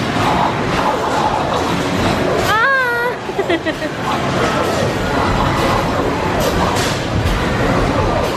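Many arcade machines fill a noisy, busy room.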